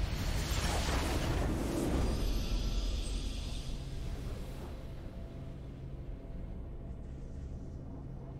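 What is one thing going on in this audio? A triumphant video game fanfare plays and fades.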